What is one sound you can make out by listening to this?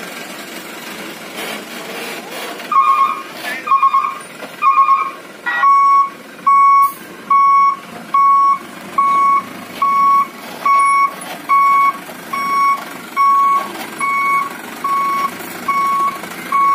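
A truck engine runs at low revs.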